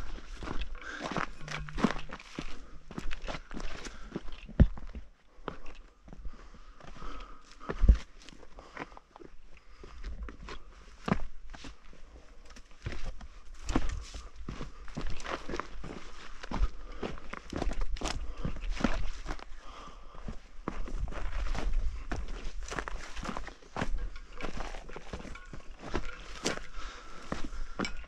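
A man walks over dry rocky ground, with gravel crunching underfoot.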